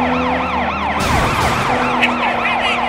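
A car crashes into another car with a thud.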